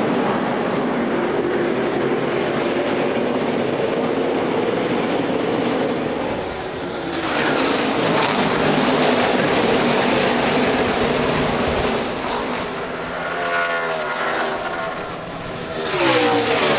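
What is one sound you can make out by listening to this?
A pack of race car engines roars loudly.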